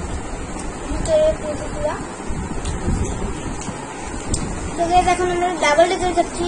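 A young girl speaks close by, chattering with animation.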